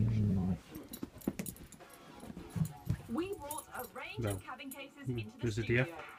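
A dog barks close by in short, deep bursts.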